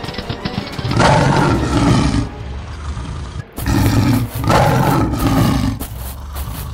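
Large beasts roar loudly.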